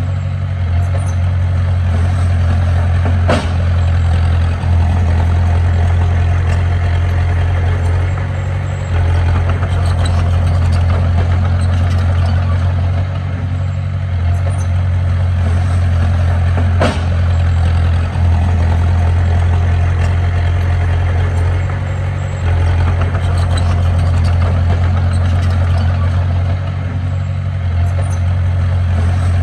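A bulldozer's steel tracks clank and squeak as it pushes dirt.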